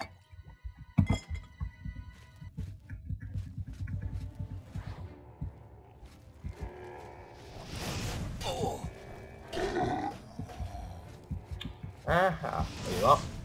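Footsteps thud steadily on a stone floor.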